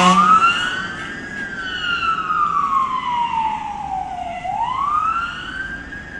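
A fire engine siren wails loudly nearby, slowly falling and rising in pitch.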